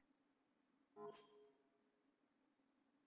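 A short electronic chime rings out.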